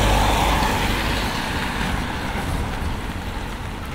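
Running footsteps slap on wet cobblestones.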